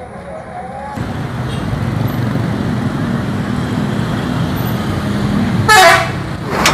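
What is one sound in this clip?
A bus engine rumbles as it drives past.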